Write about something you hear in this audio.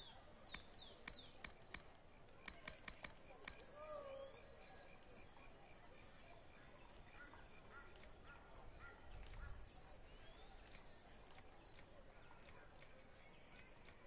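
Short game menu blips and clicks sound as the selection moves.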